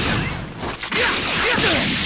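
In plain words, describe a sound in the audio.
An energy blast fires with a whooshing burst in a video game.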